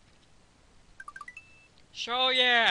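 Short electronic game beeps chime.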